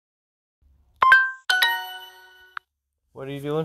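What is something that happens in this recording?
A phone app plays a bright two-part chime.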